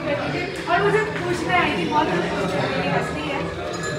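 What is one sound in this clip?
A young man talks with a young woman nearby.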